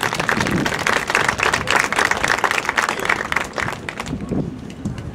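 A crowd cheers and applauds outdoors, then quiets down.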